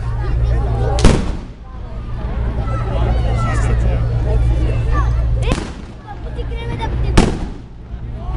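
Firecrackers bang loudly.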